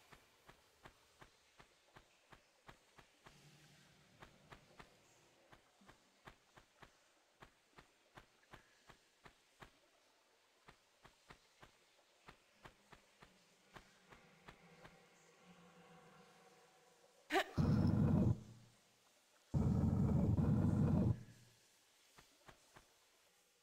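Quick footsteps patter on a hard floor.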